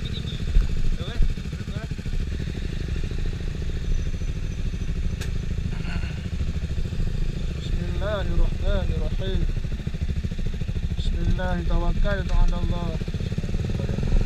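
Motorcycle engines idle with a low, steady rumble close by.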